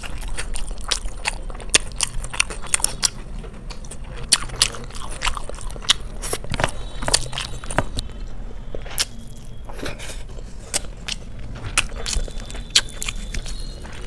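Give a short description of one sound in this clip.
Fingers squish and mix soft rice close by.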